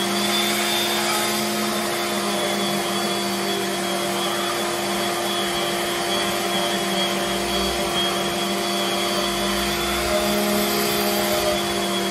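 An electric sander whirs steadily against wood.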